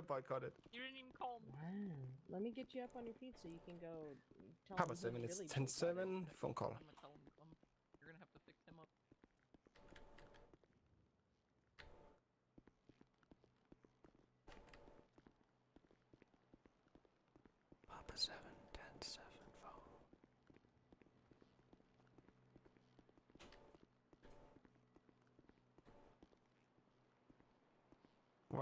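Footsteps walk steadily across a hard floor.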